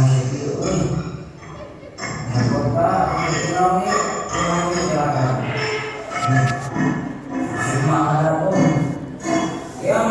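Loud music with singing plays through loudspeakers at a live show.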